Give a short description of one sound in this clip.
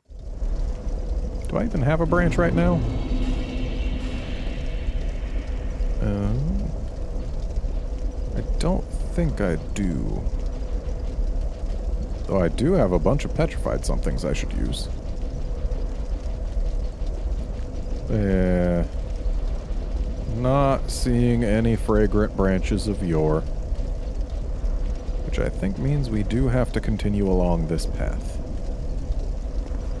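Lava rumbles with a low, steady roar.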